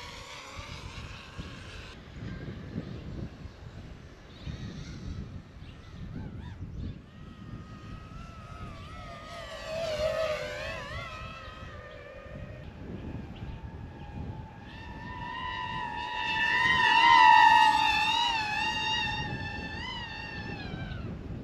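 Wind blows across open ground.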